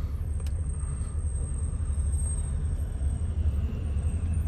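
A city bus pulls up close alongside with a deep rumble.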